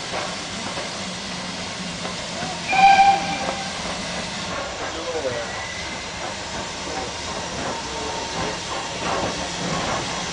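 A steam locomotive chuffs as it approaches slowly.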